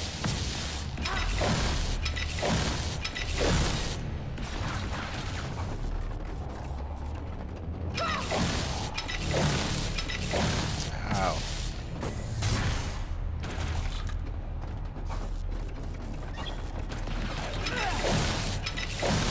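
Energy blasts fire and hiss in short bursts.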